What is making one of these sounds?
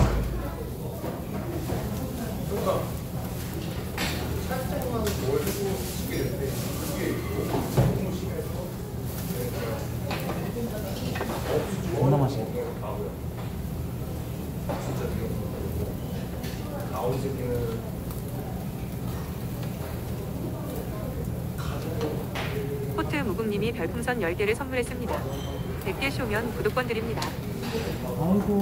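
Meat sizzles steadily on a hot grill.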